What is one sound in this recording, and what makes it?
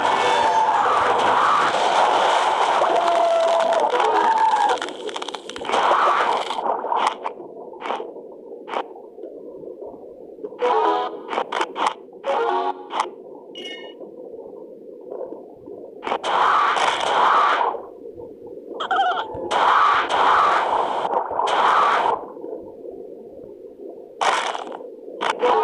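A shark chomps on prey with crunching bites.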